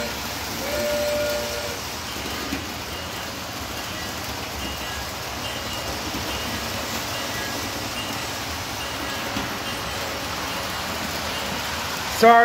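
A model train rumbles steadily along its track.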